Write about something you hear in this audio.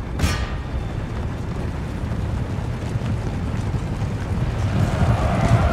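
A large crowd of soldiers tramps across grass.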